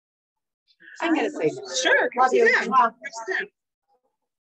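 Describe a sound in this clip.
A young woman laughs through an online call.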